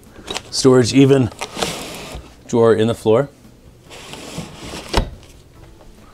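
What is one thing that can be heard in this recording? A drawer slides open and shut.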